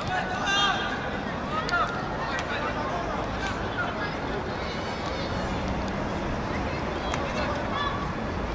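Football players shout to each other across an open pitch outdoors.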